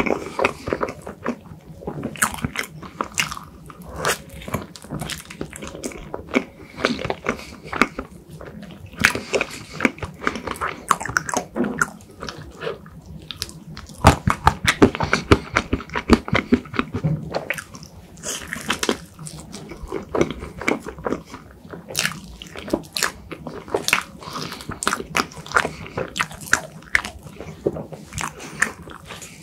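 A young man chews soft, creamy food wetly and close to the microphone.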